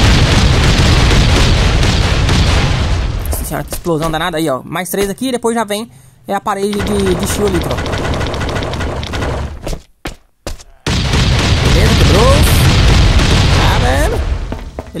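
An explosion roars with a loud, rumbling blast.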